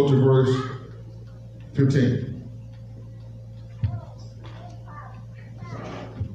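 A man speaks with animation into a microphone in a large echoing hall.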